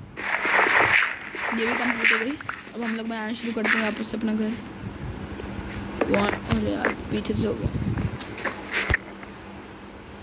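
Blocks are placed with soft thumps.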